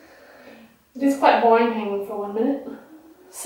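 A woman groans and strains, close by.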